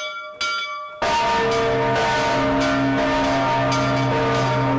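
Large church bells ring loudly, clanging over one another.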